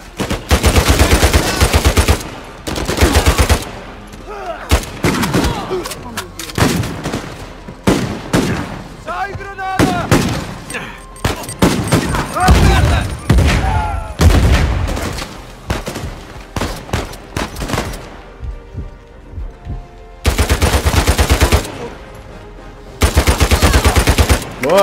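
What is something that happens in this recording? Rapid gunfire bursts from a rifle close by.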